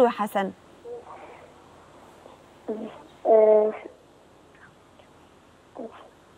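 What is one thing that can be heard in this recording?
A young woman speaks calmly into a microphone in short phrases.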